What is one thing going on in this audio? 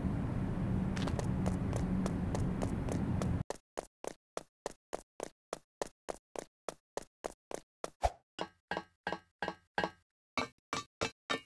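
Quick footsteps patter in an even rhythm.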